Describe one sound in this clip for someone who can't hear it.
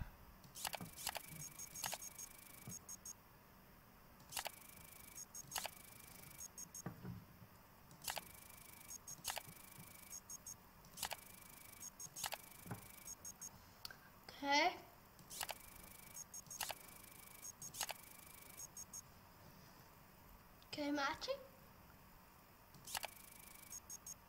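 Short electronic clicks and beeps sound again and again.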